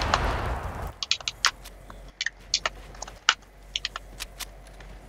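A pickaxe knocks against wood in quick, sharp strikes.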